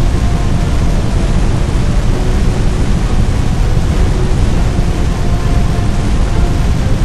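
Flames roar with a deep, steady rumble.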